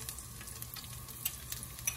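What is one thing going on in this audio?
Garlic pieces drop from a small bowl into a pan.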